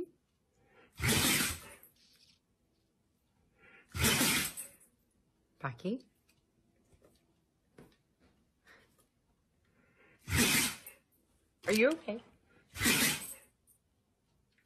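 A large dog huffs loudly through its nose.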